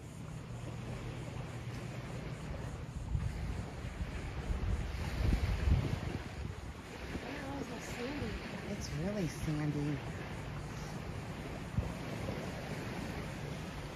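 Wind blows outdoors, rumbling steadily.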